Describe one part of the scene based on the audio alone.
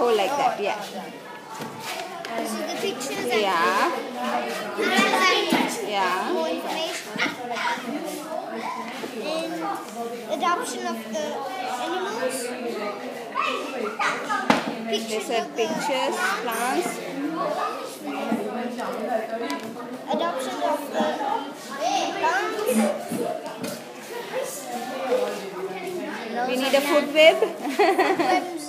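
A child talks close by with animation.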